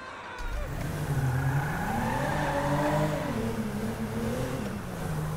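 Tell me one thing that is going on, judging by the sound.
A car engine revs as the car pulls away.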